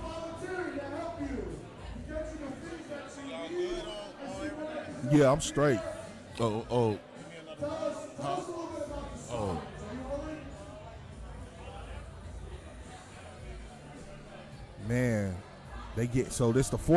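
A second man talks into a close microphone.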